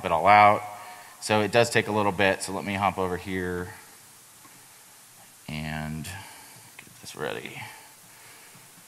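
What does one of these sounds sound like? A man speaks casually into a microphone.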